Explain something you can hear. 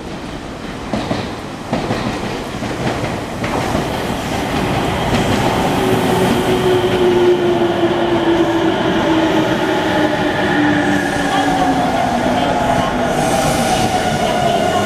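An electric train pulls in close by with a rising roar and a high whine.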